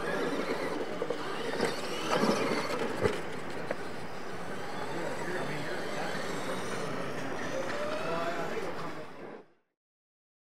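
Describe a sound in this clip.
Radio-controlled monster trucks whine as they race over dirt.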